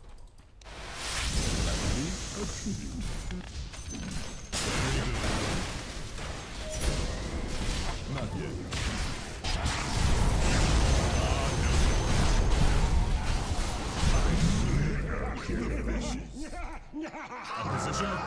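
Game spells crackle and blast in a busy fight.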